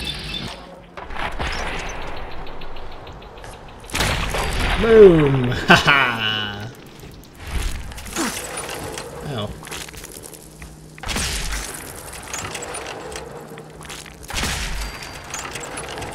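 A laser gun fires sizzling bursts.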